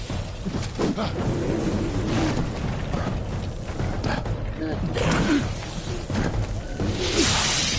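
Blades clash and strike in a fast fight.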